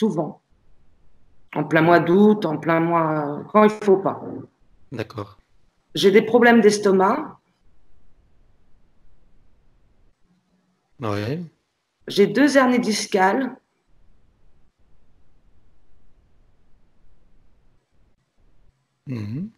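A man speaks slowly and calmly over an online call, with long pauses.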